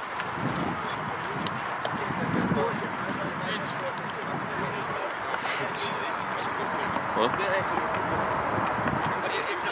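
Wind blows across an open field outdoors.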